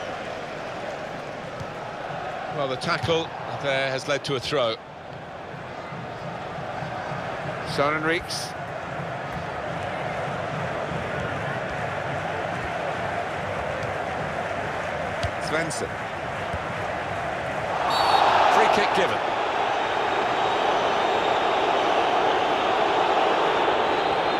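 A stadium crowd roars and swells to a loud cheer.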